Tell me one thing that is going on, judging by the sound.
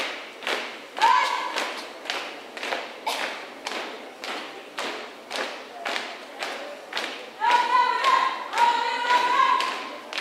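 A group of young people shout out together in loud bursts.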